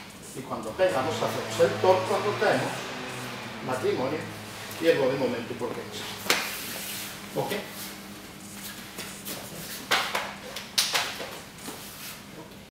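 A man speaks calmly, close by, in a room with a slight echo.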